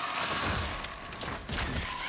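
A magic blast bursts with a fiery whoosh.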